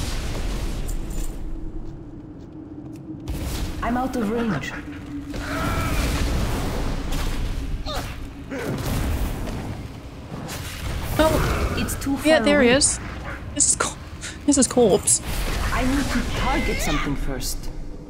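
Magic blasts and weapon hits crash in a fight.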